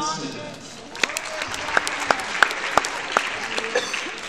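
People in the audience clap.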